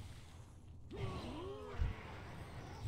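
A creature growls and shrieks.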